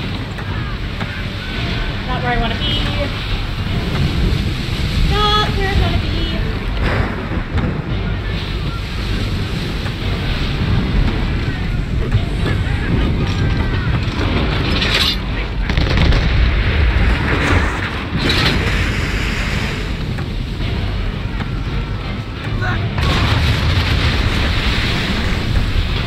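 Wind howls through a ship's rigging.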